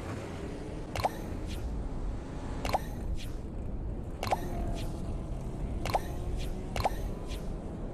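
A short click sounds each time a menu choice changes.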